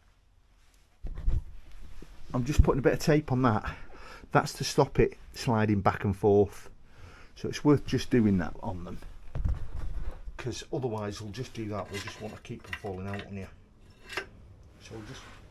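A middle-aged man talks calmly and clearly, close by, as if explaining.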